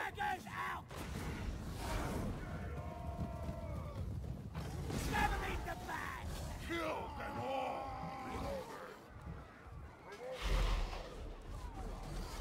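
Weapons clash as armoured soldiers fight in a battle.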